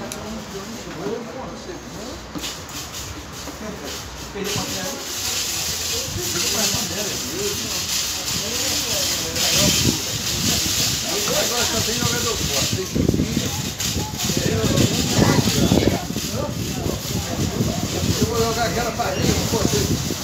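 Checkers pieces tap on a board.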